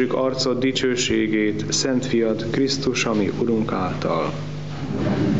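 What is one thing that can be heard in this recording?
A man chants in a steady voice through a microphone, in an echoing room.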